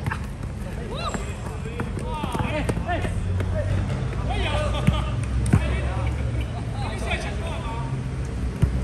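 Young men call out to each other during play.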